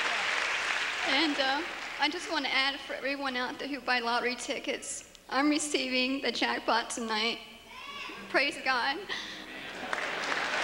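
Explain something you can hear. A young woman speaks softly into a microphone in a reverberant hall.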